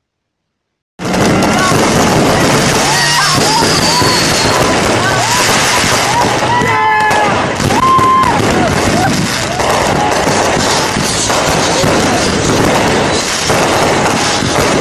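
A crowd of young men and women shouts and cheers nearby.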